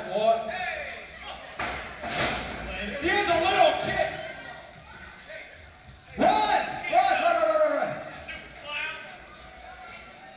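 Men in a crowd shout and cheer loudly in an echoing hall.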